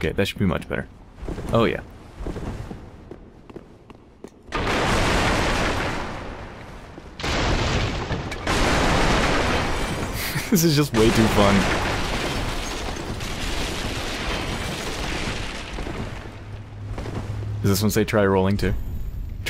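Armoured footsteps run across a stone floor.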